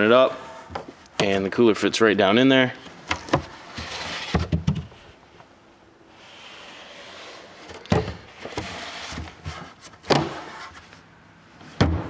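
A hard plastic cover knocks softly as it is lifted and set into place.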